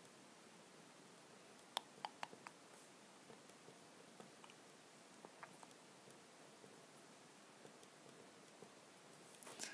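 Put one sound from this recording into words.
A pen writes and taps on paper close by.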